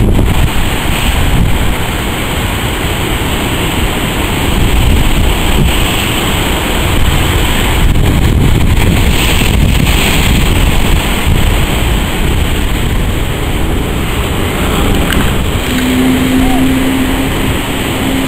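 An outboard motorboat powers through surf.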